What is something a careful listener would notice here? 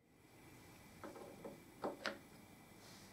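A metal part clicks softly against a lathe chuck.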